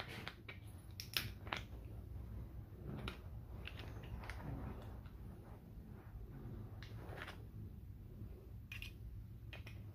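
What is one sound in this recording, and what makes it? Pliers click and snip at small metal parts.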